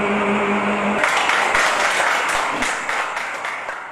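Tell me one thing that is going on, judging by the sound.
A group of men applaud.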